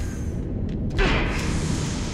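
An energy blast bursts with a sharp, fizzing roar.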